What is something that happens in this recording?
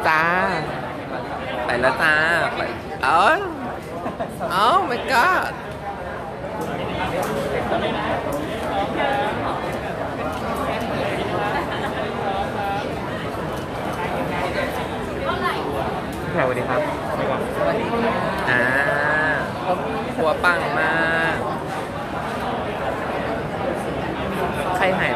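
A crowd of women and men chatter close by.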